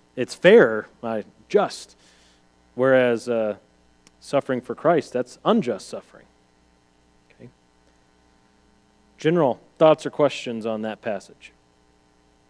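A man speaks calmly to an audience through a microphone, with pauses.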